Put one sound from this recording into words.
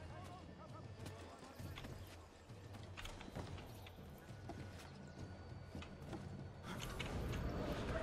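Hands and feet knock on wooden barrels during a climb.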